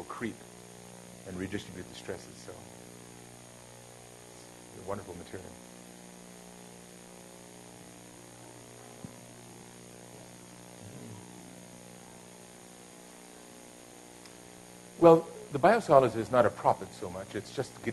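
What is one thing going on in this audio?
A man speaks through a microphone in an echoing hall, in short bursts with long pauses.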